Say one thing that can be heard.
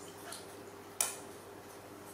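A plastic bottle taps and knocks against the floor.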